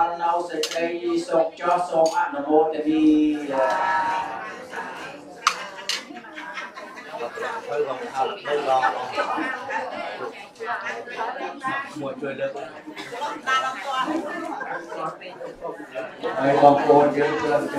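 A group of men and women chant together in a steady, droning unison.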